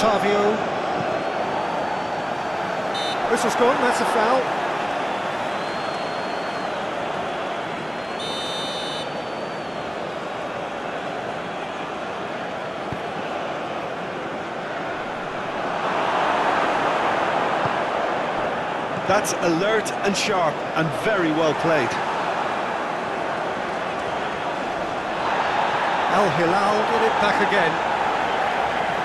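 A large stadium crowd roars and chants steadily, swelling louder at times.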